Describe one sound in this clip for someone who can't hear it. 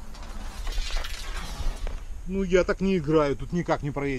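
A bicycle tyre rolls over rough ground close by.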